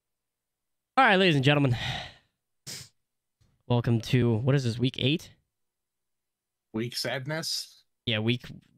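A young man talks with animation through an online call, in short bursts with pauses.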